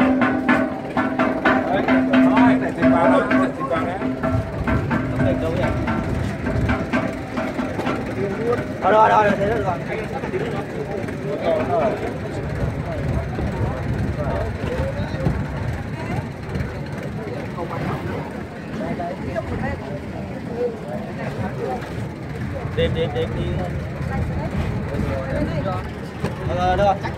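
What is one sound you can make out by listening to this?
Men talk nearby in a crowd.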